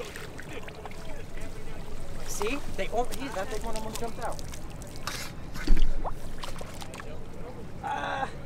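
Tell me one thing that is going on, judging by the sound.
Water drips and trickles from a net.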